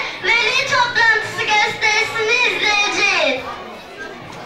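A young girl speaks with expression into a microphone, heard through a loudspeaker in an echoing hall.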